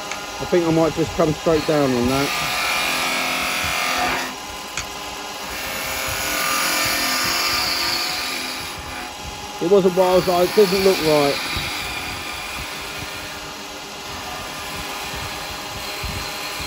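A wood lathe whirs steadily.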